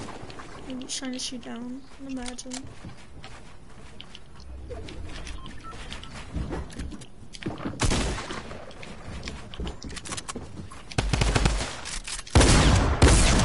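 Wooden building pieces clack into place in quick succession.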